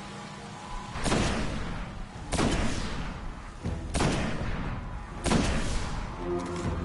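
A rifle fires loud, booming shots that echo briefly.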